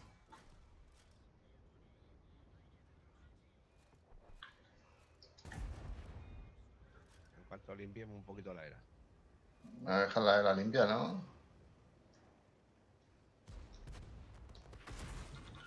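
Tank cannons fire with loud booms.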